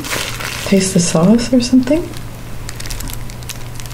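A plastic bag crinkles in a woman's hands.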